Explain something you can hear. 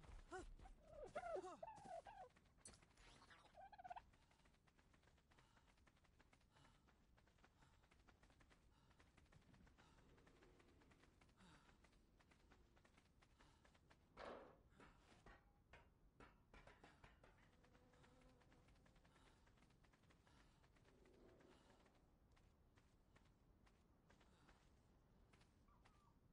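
Footsteps rustle quickly through tall grass.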